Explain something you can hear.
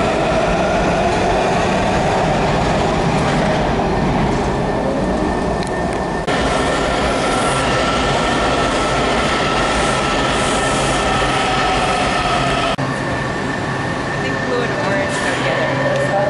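A subway train rumbles loudly along the rails, echoing in a large hall.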